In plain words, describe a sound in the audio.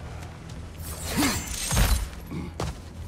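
A heavy axe swings through the air with a loud whoosh and thud.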